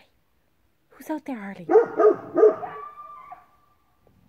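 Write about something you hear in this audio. A dog barks outdoors.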